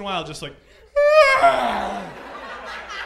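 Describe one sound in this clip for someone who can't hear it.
A man screams loudly into a microphone.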